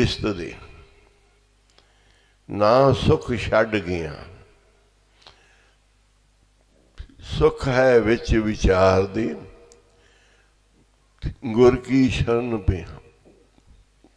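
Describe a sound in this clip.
An elderly man speaks slowly and calmly into a microphone, in phrases with pauses.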